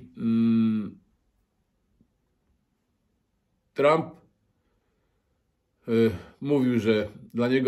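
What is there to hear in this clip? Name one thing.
A middle-aged man speaks close to a microphone, in a drawn-out, expressive way with long pauses.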